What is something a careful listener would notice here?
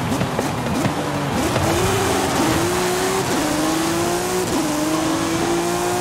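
A second race car engine roars close alongside.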